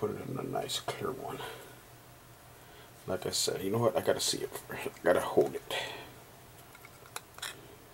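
A plastic card case clicks and rustles as it is handled.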